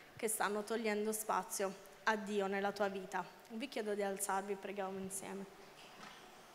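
A young woman sings into a microphone through loudspeakers in a large hall.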